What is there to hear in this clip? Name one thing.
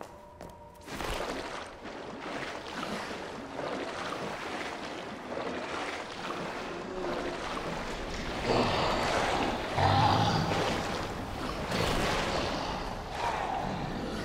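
Water splashes and sloshes around wading legs.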